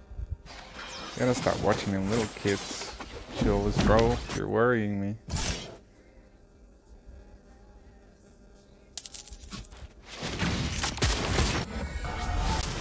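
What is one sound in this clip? Fantasy game spells whoosh and crackle in bursts.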